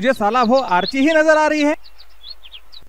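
A man calls out loudly in a drawn-out, sing-song voice.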